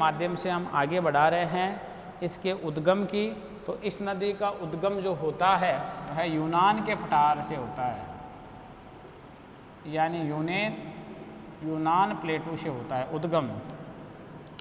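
A man speaks calmly in a lecturing tone, close by.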